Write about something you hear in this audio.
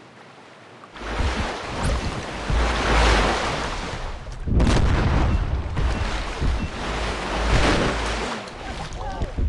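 Water splashes and churns loudly.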